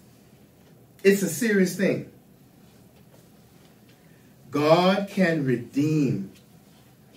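An elderly man speaks calmly into a microphone in a room, with pauses between phrases.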